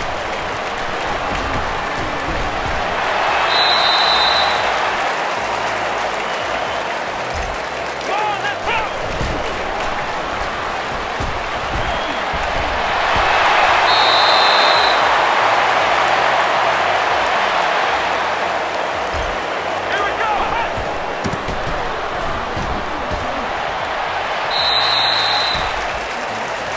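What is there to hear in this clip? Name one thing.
A stadium crowd cheers and roars in rising swells.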